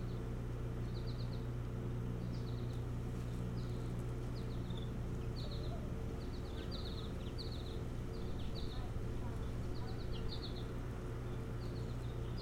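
A large bird of prey calls with short, high, repeated chirps.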